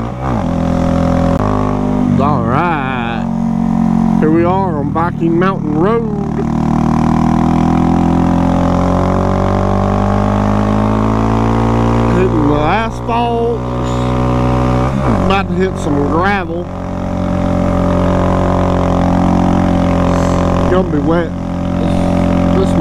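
A motorcycle engine hums steadily, its pitch slowly rising and falling.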